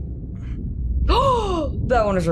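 A young woman exclaims with surprise close to a microphone.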